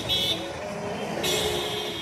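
A car engine hums as it drives by.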